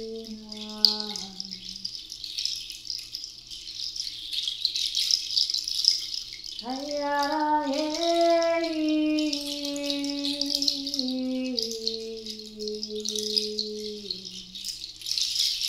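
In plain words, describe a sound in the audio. A wooden flute plays slow, sliding notes close by.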